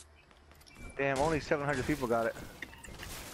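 A pickaxe chops and thuds against wood.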